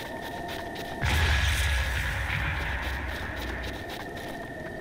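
A loud explosion booms, then rumbles and fades.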